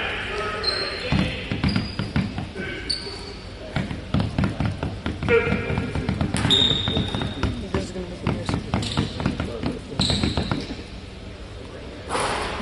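A basketball bounces on a hard floor in a large echoing gym.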